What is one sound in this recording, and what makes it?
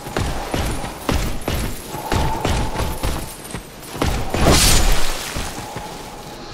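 Swords clash and strike in quick, sharp blows.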